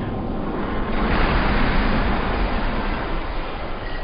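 Wood splinters and debris crash down.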